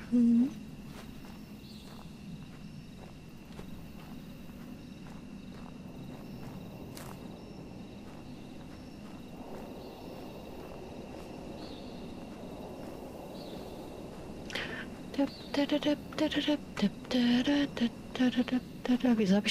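Footsteps crunch slowly on gravel.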